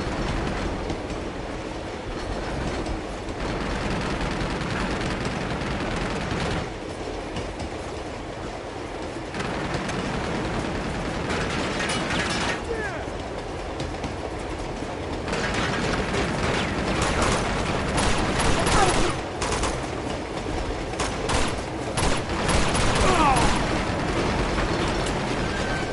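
A train rumbles along steadily on its tracks.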